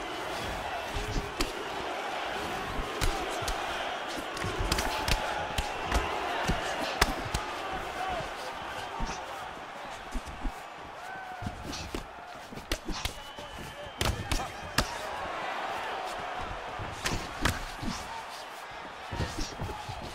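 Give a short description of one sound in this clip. Punches land with sharp smacks and thuds.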